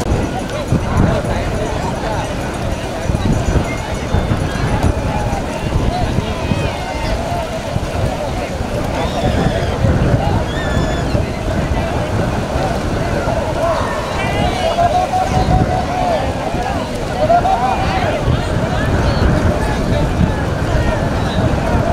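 A crowd of men shouts and chatters outdoors.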